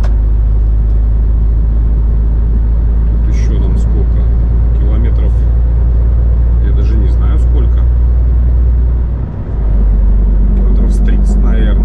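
Tyres roll steadily over a smooth road.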